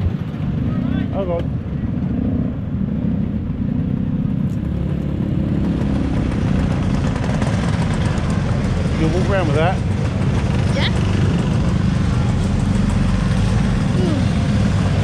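Scooter engines rev in bursts nearby.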